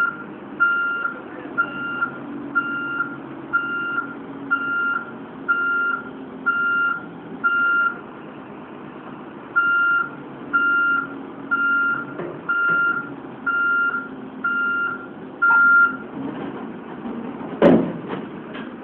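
A heavy diesel engine idles with a low, steady rumble.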